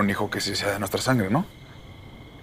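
A man speaks intently, close by.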